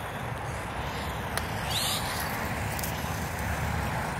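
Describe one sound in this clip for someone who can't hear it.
A toy car's electric motor whirs as it drives over grass.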